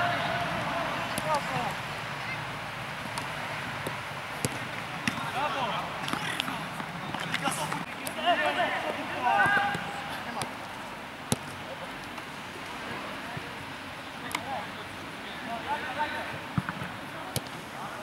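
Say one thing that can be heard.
Young players shout to each other outdoors.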